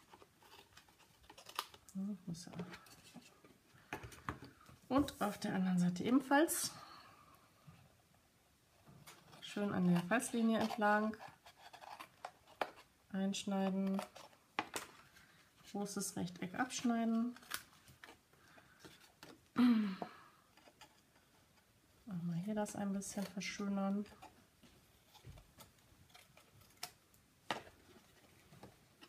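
Scissors snip through paper.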